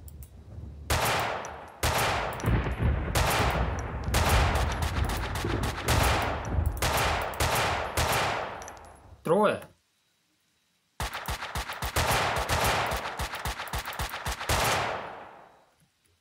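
Rifle shots crack one after another, each with a short echo.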